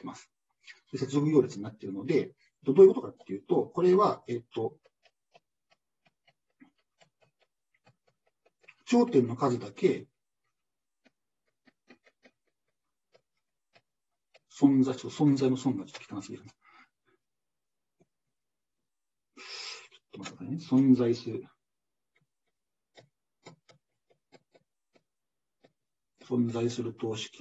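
A man speaks calmly in bursts through a microphone on an online call.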